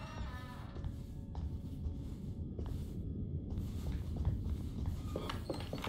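Footsteps climb stairs.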